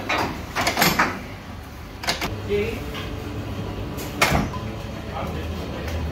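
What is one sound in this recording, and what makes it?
A dough sheeting machine hums and whirs as its rollers turn.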